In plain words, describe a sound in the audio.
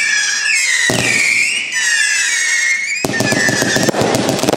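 Firework rockets whistle as they rise.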